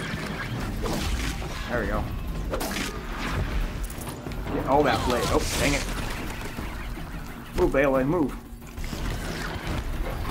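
Metallic clangs and electric zaps of a fight ring out in bursts.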